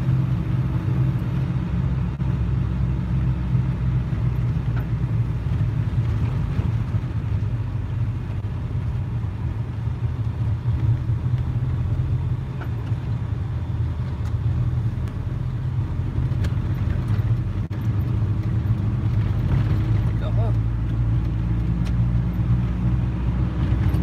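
A vehicle's engine hums steadily from inside the cab.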